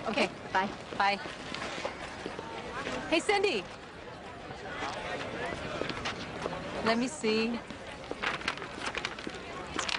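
A young woman speaks cheerfully.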